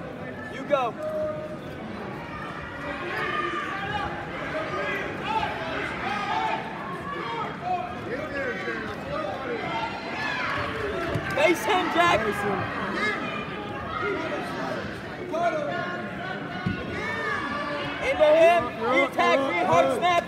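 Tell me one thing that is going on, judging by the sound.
Wrestlers' shoes squeak on a mat.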